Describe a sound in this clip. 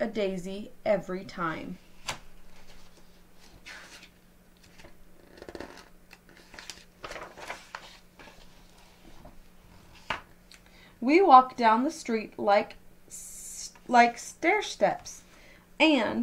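A woman reads aloud calmly, close to a microphone.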